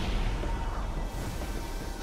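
A loud energy blast roars.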